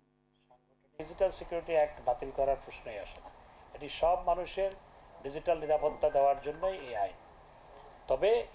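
A middle-aged man speaks calmly into a microphone in a room.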